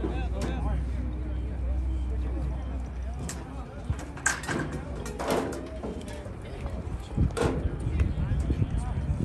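Men and women in a nearby crowd chatter and call out outdoors.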